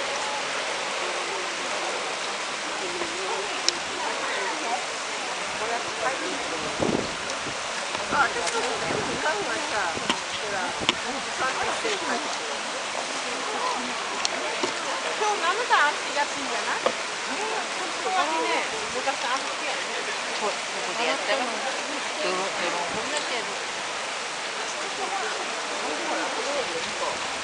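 Water rushes steadily over a low weir.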